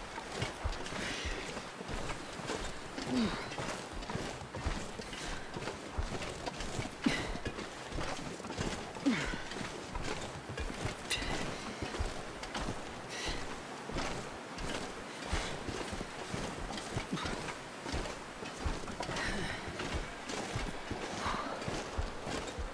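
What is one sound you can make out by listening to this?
Footsteps crunch steadily through deep snow.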